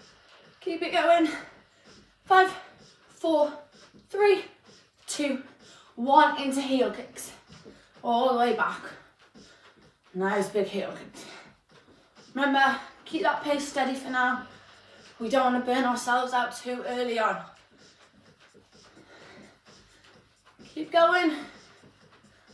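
A young woman speaks close by in short bursts.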